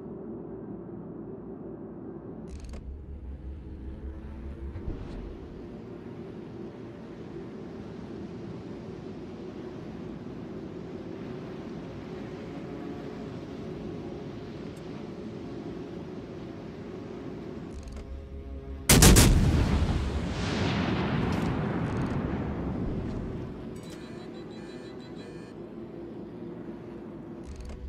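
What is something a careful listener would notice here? A large ship's engine hums steadily.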